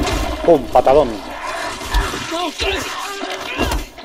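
A zombie snarls and groans up close.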